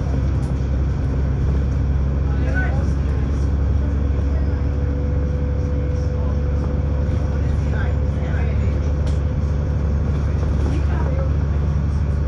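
A bus engine hums low and steady as the bus drives along a road.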